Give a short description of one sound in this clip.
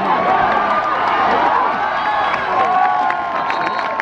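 Football players collide with a thud during a tackle.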